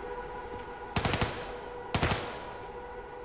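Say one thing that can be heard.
Gunshots ring out in short bursts, echoing.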